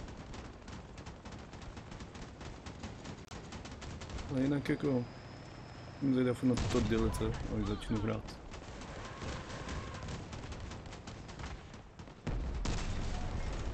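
Gunfire rattles in bursts.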